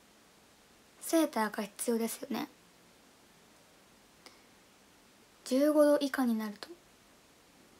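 A young woman speaks softly and close to a microphone, in short phrases.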